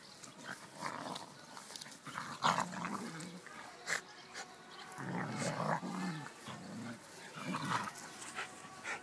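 Two dogs growl and snarl as they wrestle playfully.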